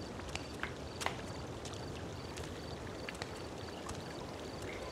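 A woman's heels click on a stone floor.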